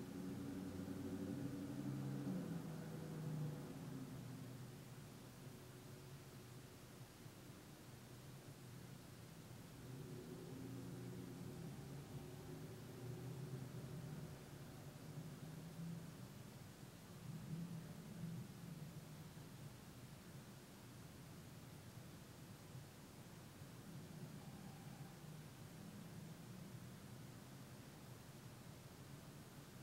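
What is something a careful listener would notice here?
A middle-aged man speaks slowly and calmly, close by.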